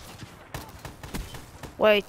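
An automatic rifle fires bursts of gunfire.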